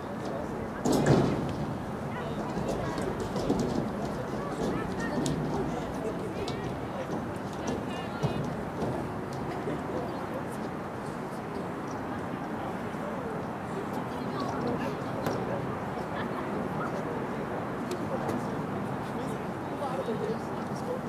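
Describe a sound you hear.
Young women call out to each other across an open field at a distance.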